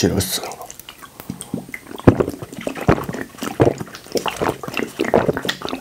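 Carbonated drink fizzes and bubbles in a bottle.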